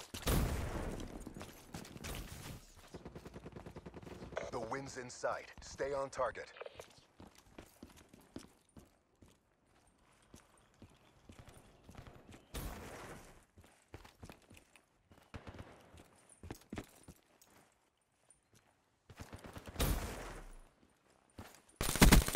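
Footsteps crunch on dirt and gravel at a steady walking pace.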